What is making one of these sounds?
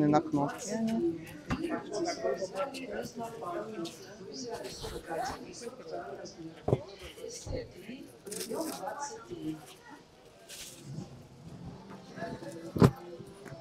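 A leather bag rustles and bumps as it is handled.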